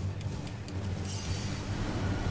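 A magical blast whooshes past.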